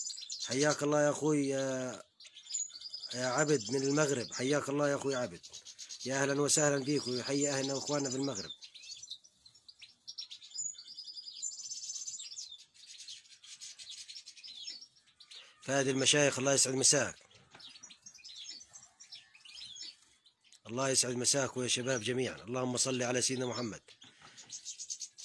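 Small birds chirp and twitter close by.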